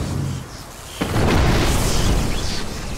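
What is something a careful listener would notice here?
A massive creature crashes heavily to the ground.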